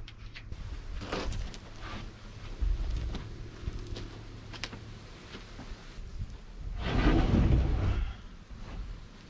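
A wooden panel knocks and scrapes against a frame.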